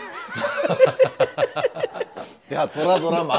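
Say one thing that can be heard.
Young men laugh loudly together.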